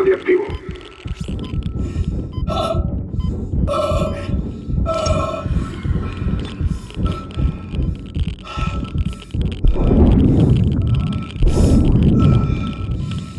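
Heavy metal boots clank on a metal floor.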